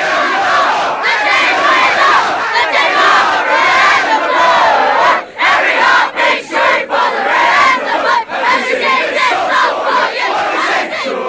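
Young boys sing loudly together.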